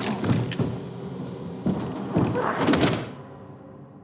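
A heavy blow thuds on wooden floorboards.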